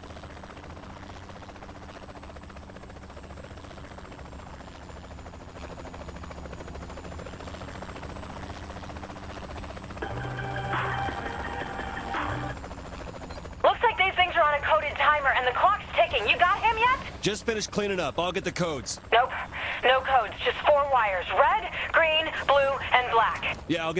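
A helicopter's rotor thrums steadily overhead.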